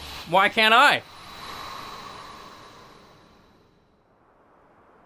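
A magic spell bursts with a whooshing shimmer that slowly fades.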